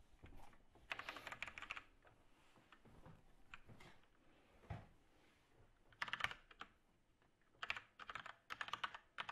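Keys clatter quickly on a computer keyboard in short bursts.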